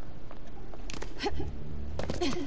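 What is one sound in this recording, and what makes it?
A person vaults over a stone railing and lands with a thud.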